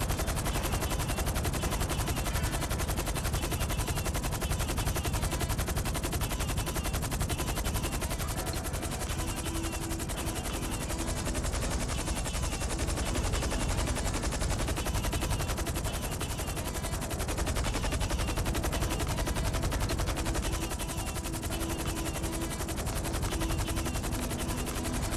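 A helicopter's engine roars steadily.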